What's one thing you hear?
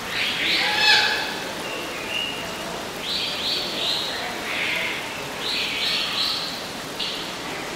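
Water trickles steadily from a small fountain.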